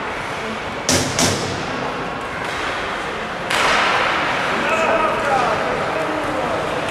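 Skates scrape and hiss across the ice in an echoing rink.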